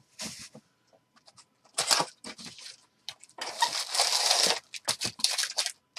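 Cardboard rips as a box is torn open.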